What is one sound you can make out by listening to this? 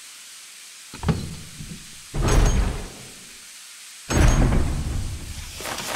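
A heavy door creaks and swings open.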